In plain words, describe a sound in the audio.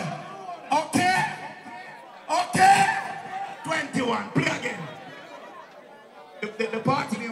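A lively crowd chatters and shouts close by.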